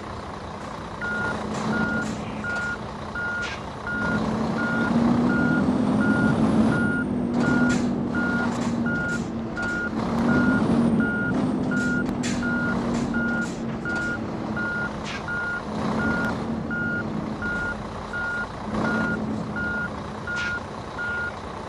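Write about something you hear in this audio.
A reversing alarm beeps at a steady pace.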